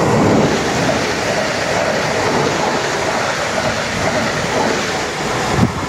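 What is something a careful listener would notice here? A passenger train rushes past close by.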